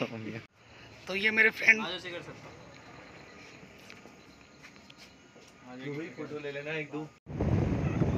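A young man speaks close by in short bursts.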